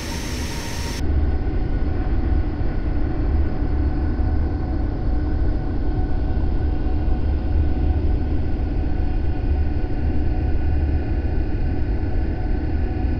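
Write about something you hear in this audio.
Jet engines drone low and muffled, as heard from inside a cockpit.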